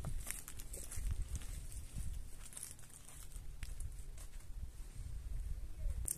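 Footsteps crunch on dry, stony ground.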